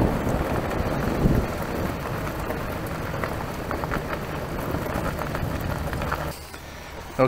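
Tyres roll fast over gravel with wind rushing past.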